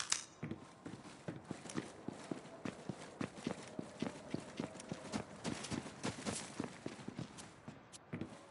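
Footsteps crunch quickly over snow.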